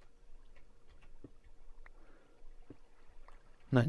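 A pickaxe chips at stone.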